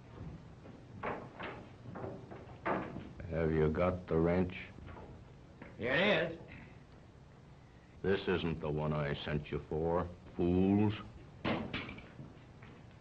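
A man talks gruffly, heard through an old, muffled recording.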